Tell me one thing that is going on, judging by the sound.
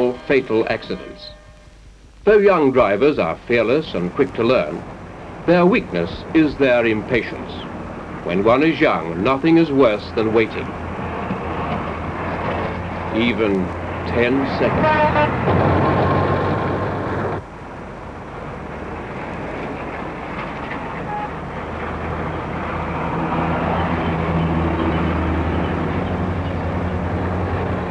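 A vintage car engine rumbles as the car drives along a road.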